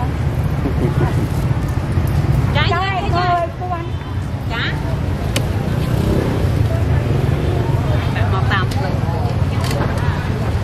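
A busy outdoor market hums with a steady background murmur.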